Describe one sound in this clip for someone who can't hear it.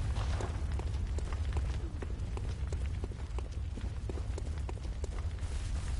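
Footsteps tread through grass and earth.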